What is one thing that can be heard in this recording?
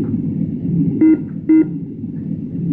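An electronic cockpit tone beeps twice.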